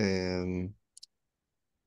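A young man speaks briefly over an online call.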